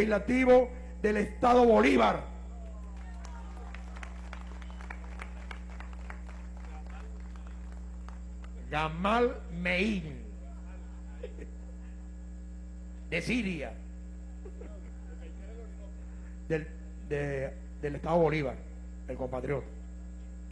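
A man speaks loudly into a microphone over a loudspeaker, in a large echoing hall.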